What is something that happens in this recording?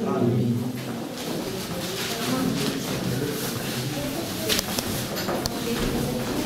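Footsteps shuffle across a wooden floor.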